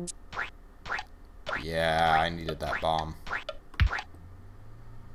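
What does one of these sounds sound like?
Short electronic game sound effects chirp and jingle.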